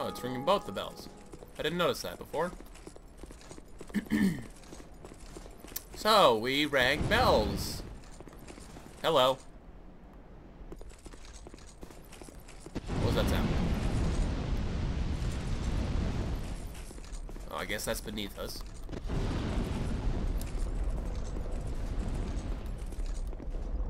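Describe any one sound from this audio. Heavy armoured footsteps run over stone.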